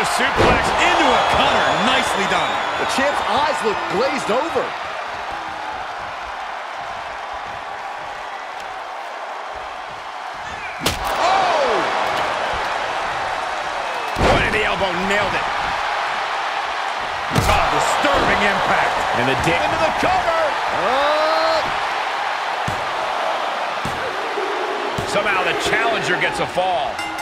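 A large crowd cheers and roars throughout in a big arena.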